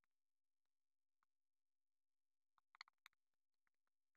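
Thin plastic film crinkles softly as it is peeled off a phone.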